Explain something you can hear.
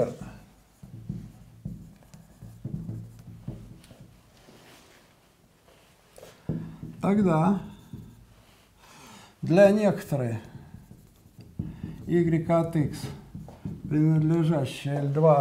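A marker taps and scratches on a whiteboard.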